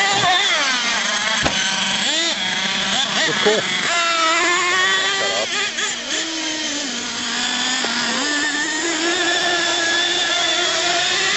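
A small electric motor whines and revs up and down.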